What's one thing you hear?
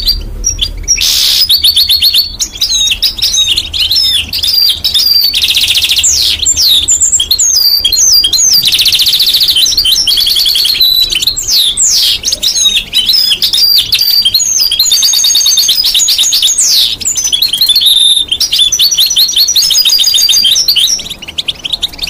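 A parrot whistles and chatters loudly up close.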